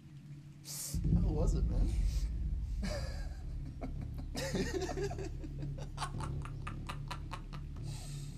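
A second young man laughs up close.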